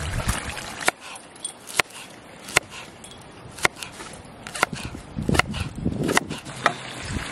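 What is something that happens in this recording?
A knife chops sharply on a wooden board.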